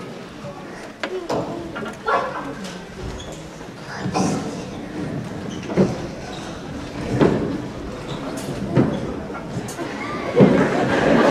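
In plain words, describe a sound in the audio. Walkers knock on a wooden floor.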